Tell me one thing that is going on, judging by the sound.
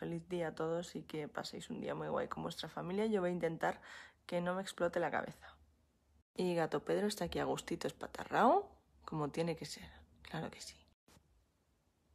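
A young woman talks casually and close up.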